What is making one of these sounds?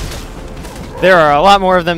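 Energy weapons fire in quick bursts.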